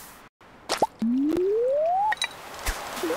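A fishing line whooshes out with a rising swish as it is cast.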